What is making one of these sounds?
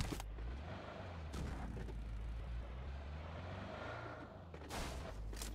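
A car engine rumbles nearby.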